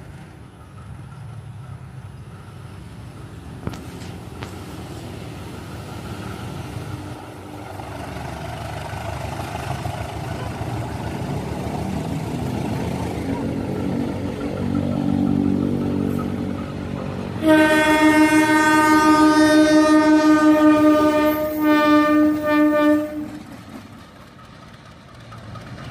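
A diesel locomotive engine rumbles as it approaches and grows louder.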